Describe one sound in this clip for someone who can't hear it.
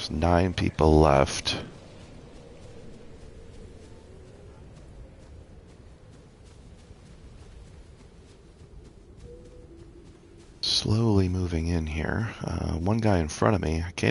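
Quick footsteps patter on grass.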